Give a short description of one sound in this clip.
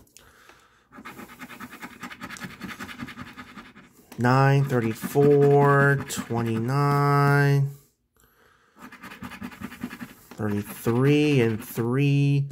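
A coin scratches across a card with a dry rasping sound.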